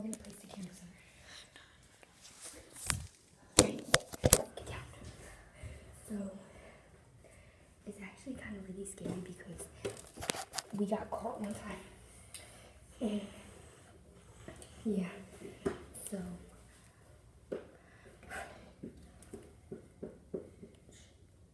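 A young girl talks and sings close by with animation.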